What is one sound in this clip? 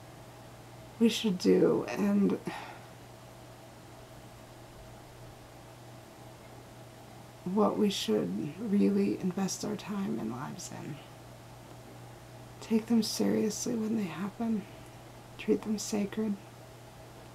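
A woman talks calmly and close by, in pauses.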